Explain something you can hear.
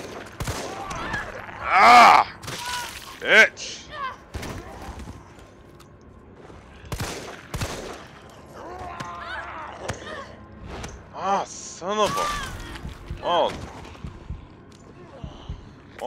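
A woman grunts and cries out in a struggle.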